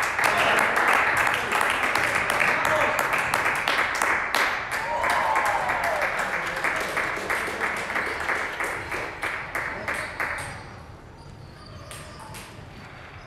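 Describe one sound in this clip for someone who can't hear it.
A table tennis ball clicks back and forth off paddles and the table in a large echoing hall.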